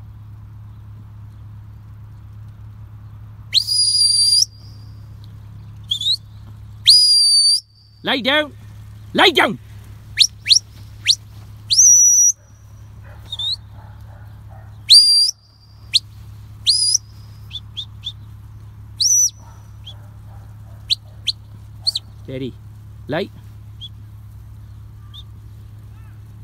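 A dog runs across grass.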